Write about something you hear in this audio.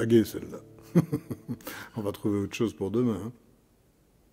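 An older man speaks calmly into a nearby microphone.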